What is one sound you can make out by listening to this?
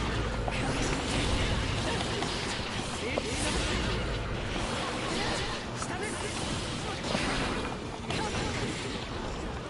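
Punches, kicks and blade slashes land with sharp hits and whooshes in a fighting game.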